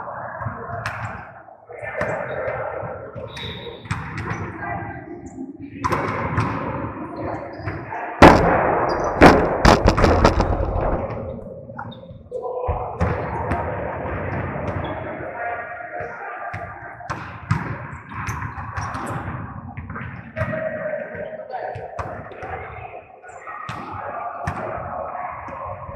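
A volleyball thuds as players hit it back and forth in a large echoing hall.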